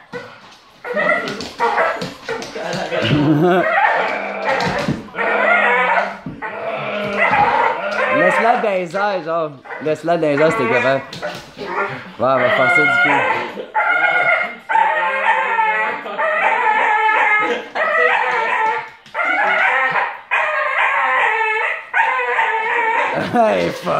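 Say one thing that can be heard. A dog growls while tugging on a toy.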